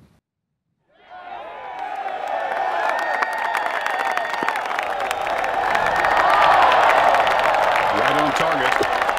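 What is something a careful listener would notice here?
A crowd of spectators cheers and applauds outdoors.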